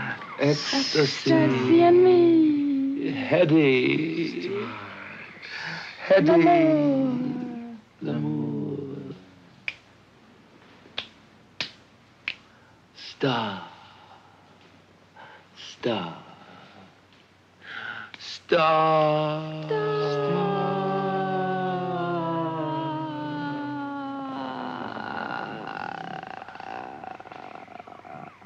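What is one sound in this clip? A young woman sings dreamily close by.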